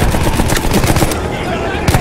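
A flamethrower roars.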